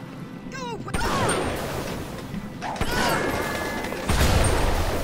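A gun fires loud blasts.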